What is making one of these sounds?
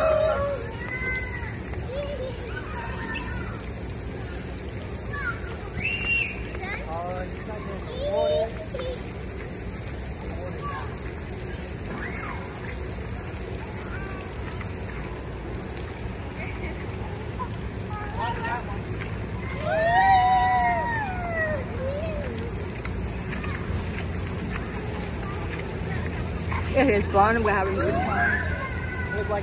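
Sprinkler jets spray and splash onto wet pavement.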